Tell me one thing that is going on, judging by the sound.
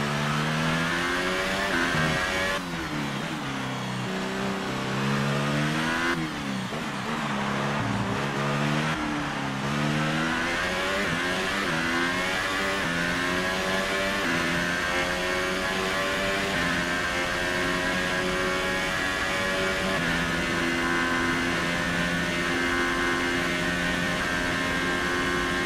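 A racing car engine screams loudly, its pitch dropping sharply with each gear change and rising again as it accelerates.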